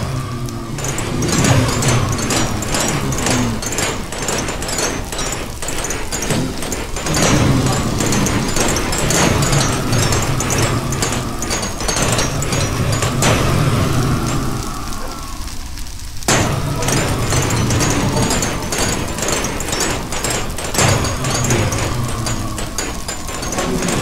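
Blocks crack and break in quick, repeated clicks.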